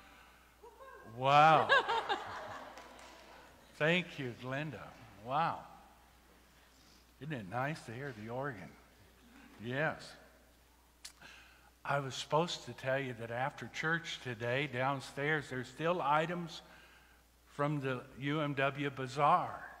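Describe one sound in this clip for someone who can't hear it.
A man speaks calmly through a microphone in a large echoing hall.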